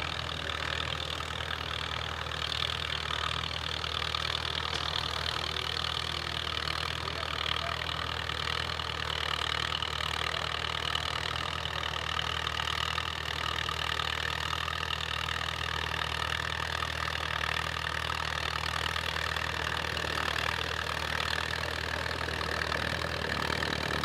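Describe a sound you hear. A tractor engine chugs steadily close by.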